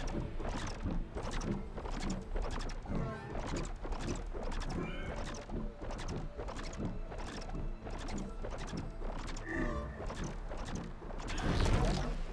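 Large wings beat in a steady, fast rhythm.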